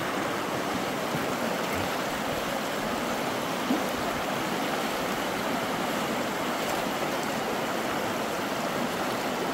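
A fast river rushes and splashes over rocks, close by.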